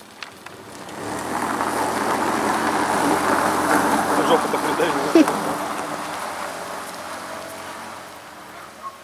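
Tyres crunch on packed snow and fade into the distance.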